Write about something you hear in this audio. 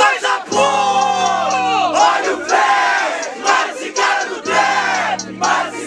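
A young man shouts with excitement.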